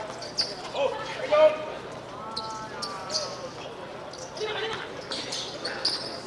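Sneakers squeak sharply on the hard court.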